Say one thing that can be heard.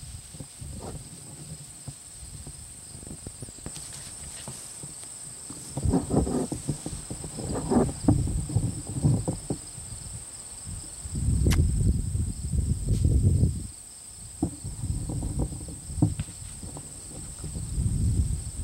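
Puppies rustle and scamper through grass.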